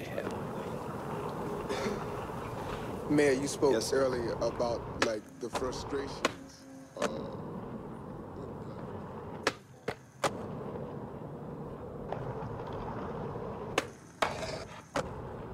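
Skateboard wheels roll steadily over pavement.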